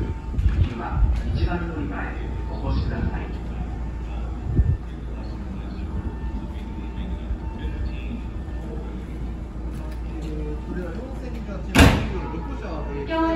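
A train rumbles slowly into a station and draws to a stop.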